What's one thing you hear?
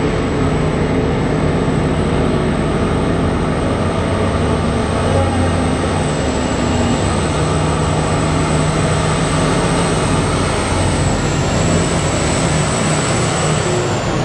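Giant tyres crunch over a dirt road.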